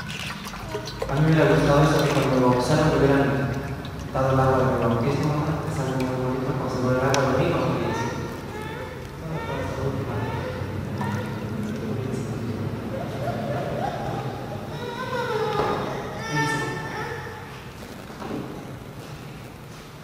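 A man speaks calmly through a microphone in an echoing room.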